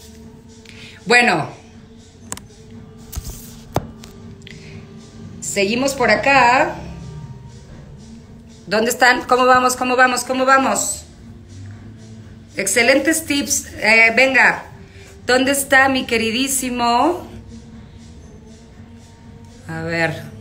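A middle-aged woman speaks close up, with animation and pauses.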